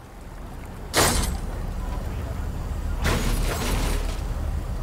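A pickaxe strikes a metal crate with loud clangs.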